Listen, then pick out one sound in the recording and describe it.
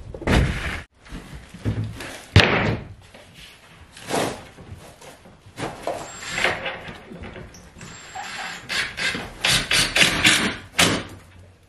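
A wooden panel thumps and rubs against a wall.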